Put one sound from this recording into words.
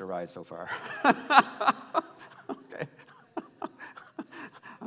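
An elderly man laughs into a microphone.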